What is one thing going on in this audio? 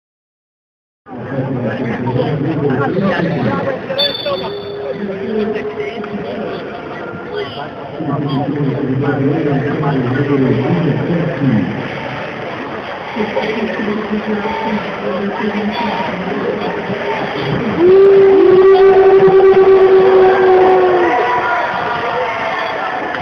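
A crowd chatters and murmurs in a large echoing arena.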